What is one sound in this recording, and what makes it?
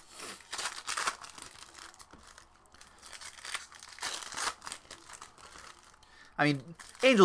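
Foil card wrappers rustle and crinkle as they are torn open.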